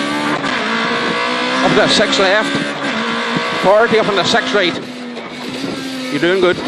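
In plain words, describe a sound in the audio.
A rally car engine roars steadily from inside the car.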